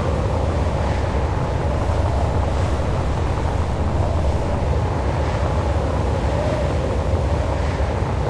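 A spacecraft's engines rumble low and steadily.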